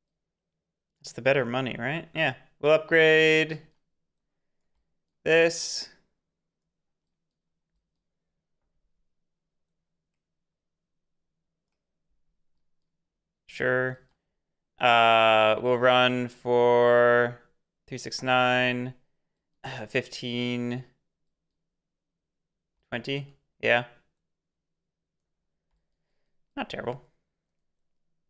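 A young man talks calmly and closely into a microphone, in short bursts with pauses.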